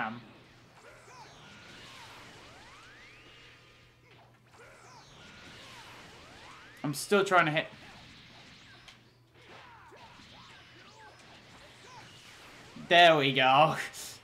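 Energy blasts whoosh and crackle in a fight.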